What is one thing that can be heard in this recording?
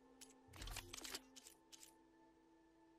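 A game menu clicks softly as the selection changes.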